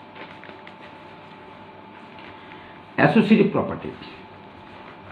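Sheets of paper rustle as they are shuffled by hand.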